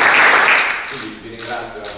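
A middle-aged man speaks calmly to a small audience.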